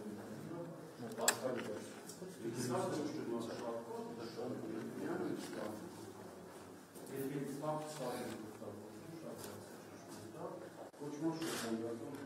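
Several men talk nearby in a room with a slight echo.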